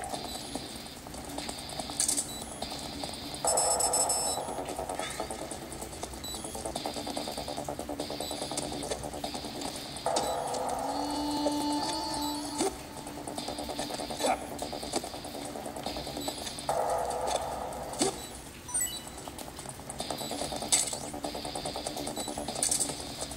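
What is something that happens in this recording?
Video game sounds and music play from a small handheld speaker.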